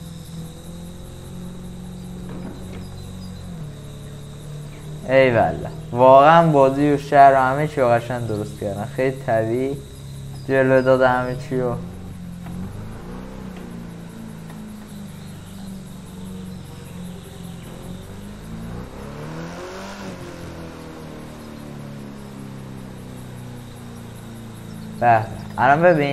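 A car engine hums steadily at low revs.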